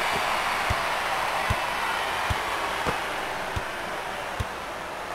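A large crowd murmurs and cheers steadily in an arena.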